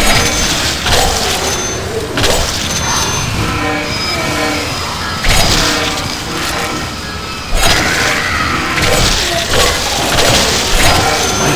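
Blades swish and slash through flesh with wet thuds.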